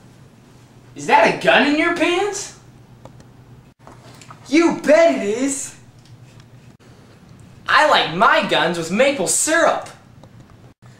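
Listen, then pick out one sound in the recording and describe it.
A teenage boy talks with animation close by.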